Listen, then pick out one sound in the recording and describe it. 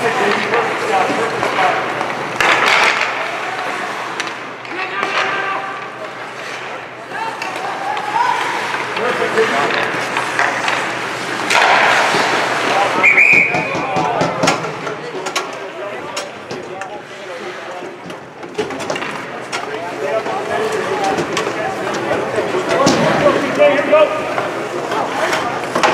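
Spectators murmur and shout in an echoing rink.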